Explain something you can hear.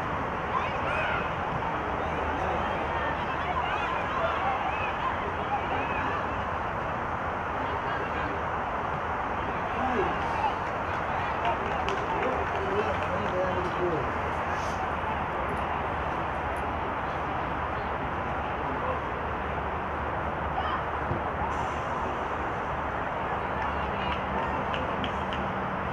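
Players shout and call out across an open field, heard from a distance.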